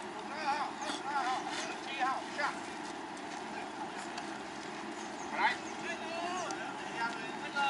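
Young men call out across an open ball field.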